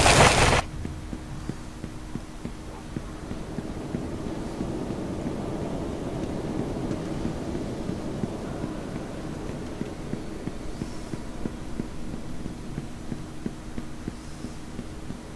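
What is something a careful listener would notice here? Footsteps tap steadily on a stone floor.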